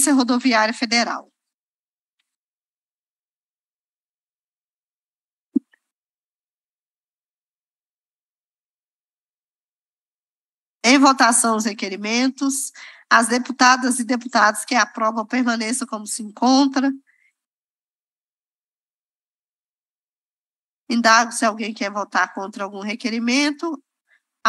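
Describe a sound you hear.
A woman speaks calmly into a microphone in short spells.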